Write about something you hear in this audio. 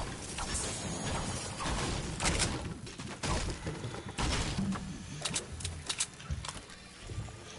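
A pickaxe strikes wood with sharp knocks.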